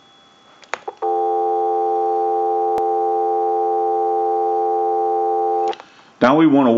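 A telephone dial tone hums steadily.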